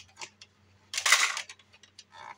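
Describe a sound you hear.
Plastic toy wings snap open with a sharp click.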